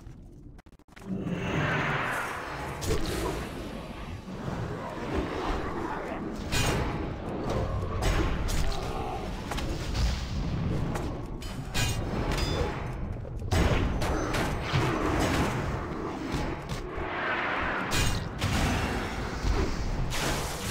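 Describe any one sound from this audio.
Weapon blows clash and thud repeatedly.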